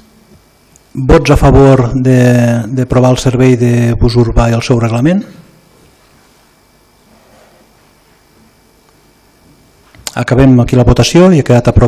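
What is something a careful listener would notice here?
An older man speaks calmly into a microphone in an echoing hall.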